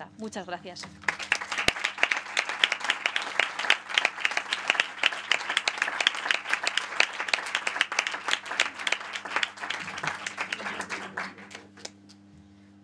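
An audience claps loudly in an echoing hall.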